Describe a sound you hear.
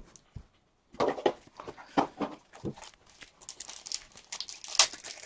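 Cards rustle and flick in a person's hands.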